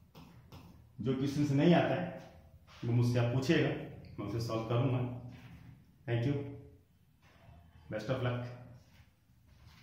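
A man speaks calmly and clearly close to a microphone.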